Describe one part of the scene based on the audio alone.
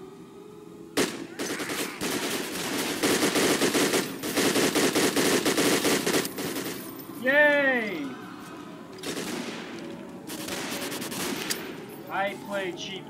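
A rifle fires in rapid bursts, with loud sharp shots echoing.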